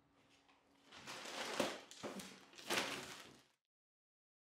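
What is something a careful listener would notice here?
Dishes clink in a sink.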